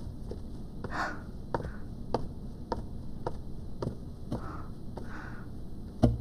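High heels click on a hard floor at a quick walking pace.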